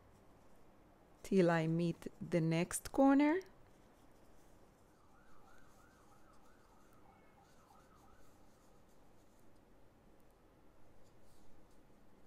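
Yarn rustles softly as a crochet hook pulls it through stitches.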